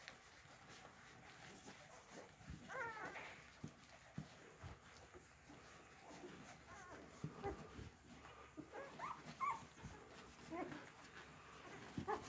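Newborn puppies suckle with soft wet smacking sounds.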